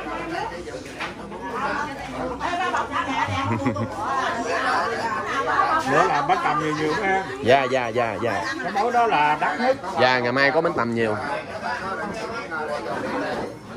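Several men and women talk and chatter close by.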